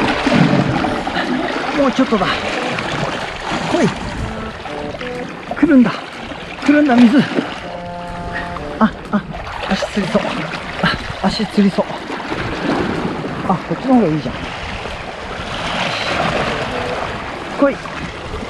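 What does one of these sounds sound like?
Water splashes and laps against rocks close by.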